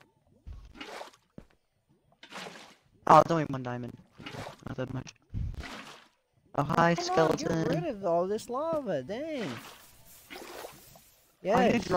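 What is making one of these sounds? Water splashes as it is poured out of a bucket.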